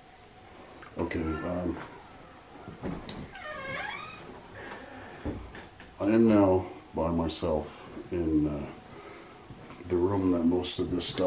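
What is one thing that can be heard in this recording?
A man speaks quietly and close by.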